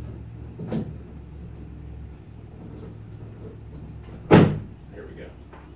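A hammer strikes metal with loud, ringing blows.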